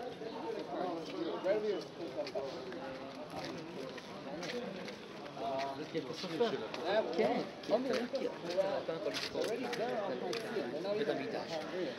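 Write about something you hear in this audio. A man talks with animation close by.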